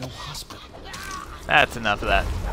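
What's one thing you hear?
A blade stabs into flesh with a wet thud.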